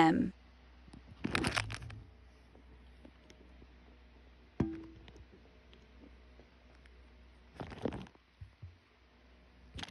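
A small tortoise munches on leafy greens.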